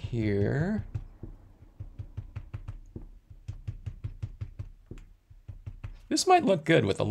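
A sponge dabs and taps rhythmically on paper.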